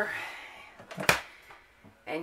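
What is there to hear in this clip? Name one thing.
A plastic lid snaps shut.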